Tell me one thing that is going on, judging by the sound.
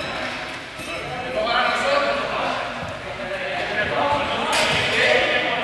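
Players shout and call out in a large echoing hall.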